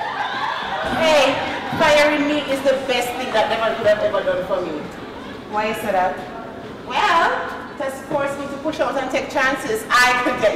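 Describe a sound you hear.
A young woman talks playfully.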